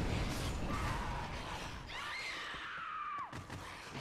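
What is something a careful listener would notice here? A sword strikes a creature with heavy blows.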